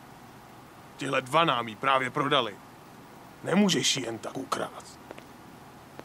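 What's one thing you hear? A man speaks in a low voice, close by.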